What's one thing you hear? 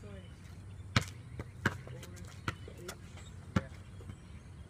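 A basketball bounces on concrete outdoors.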